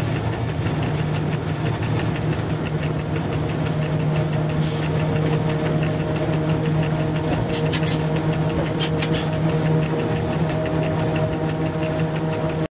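A train rumbles steadily along the rails with a low hum.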